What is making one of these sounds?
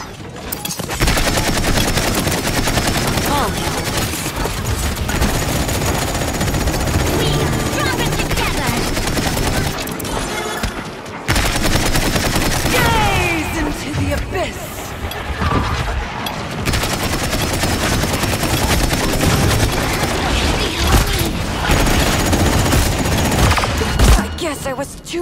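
Rapid gunfire rattles from a game weapon.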